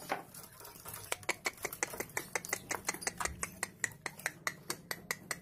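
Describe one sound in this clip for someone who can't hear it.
A hand taps and rattles a wire bird cage.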